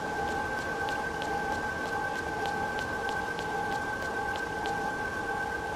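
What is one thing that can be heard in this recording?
Footsteps tap at an even pace on a hard floor.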